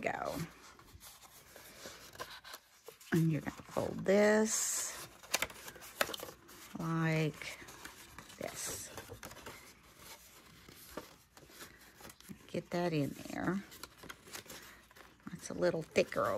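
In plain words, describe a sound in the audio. Paper rustles and creases as it is folded by hand.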